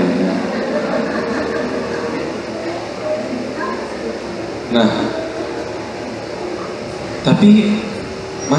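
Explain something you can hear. A man speaks calmly into a microphone, heard through a loudspeaker in a slightly echoing room.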